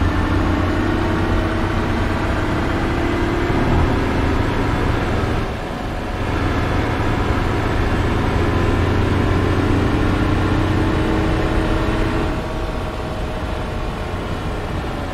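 Tyres roll on a road with a constant rush.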